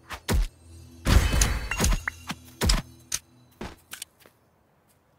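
A sword swings and strikes with sharp hits.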